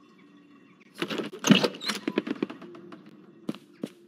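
A wooden door creaks and bangs open.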